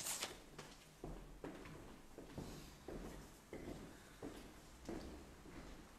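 Footsteps thud on a hard floor as people walk away.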